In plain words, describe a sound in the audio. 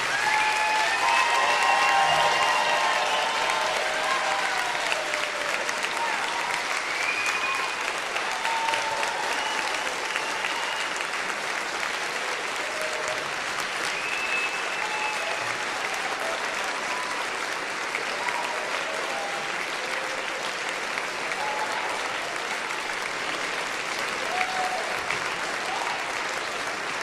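Members of an audience cheer and whoop loudly.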